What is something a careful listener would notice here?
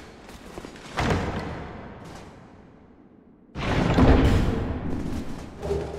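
A heavy wooden chest creaks open.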